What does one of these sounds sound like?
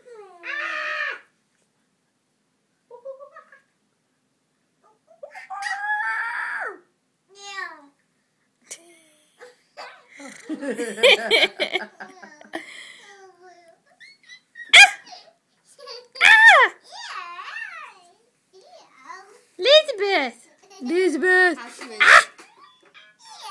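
A young woman talks close by in a playful, animated voice.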